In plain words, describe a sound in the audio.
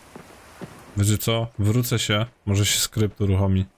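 A young man talks animatedly into a microphone.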